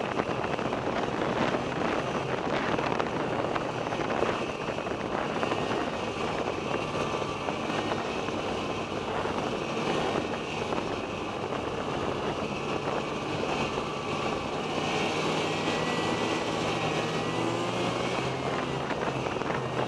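Skis hiss and crunch over packed snow.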